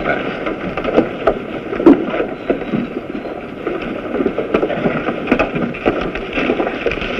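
A wooden carriage creaks and knocks as men climb aboard.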